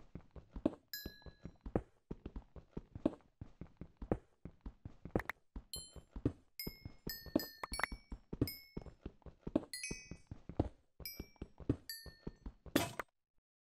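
Small items pop with short high blips as they are picked up.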